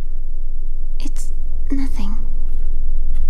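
A young girl answers quietly.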